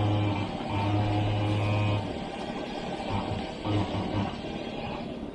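A car engine idles nearby with a low hum.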